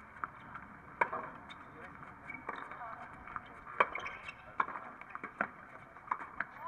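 Tennis rackets strike the ball in a quick rally.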